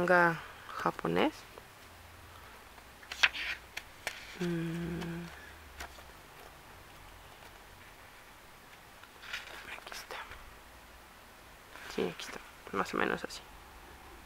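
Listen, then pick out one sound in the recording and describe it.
Paper pages rustle and flutter as a book is flipped through.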